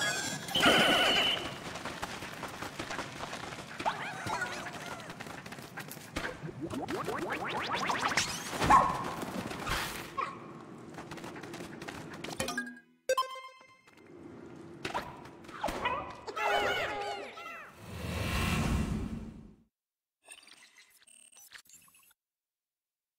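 Game music and sound effects play.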